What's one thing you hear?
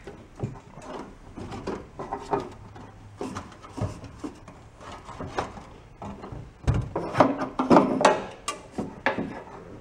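Hands knock and rattle metal engine parts.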